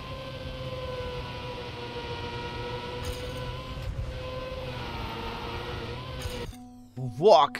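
A racing car engine hums steadily in a video game.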